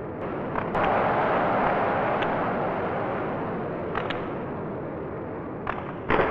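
A hockey puck clacks sharply off sticks now and then.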